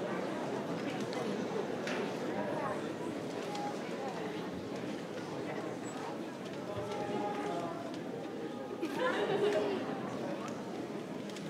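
A large crowd murmurs and chatters in a large echoing hall.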